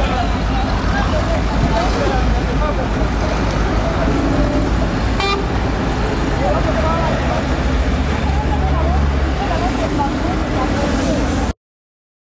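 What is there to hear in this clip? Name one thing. A van engine idles with a low rumble.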